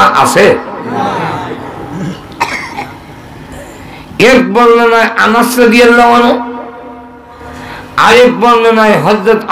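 A man chants in a drawn-out, melodic voice through a microphone.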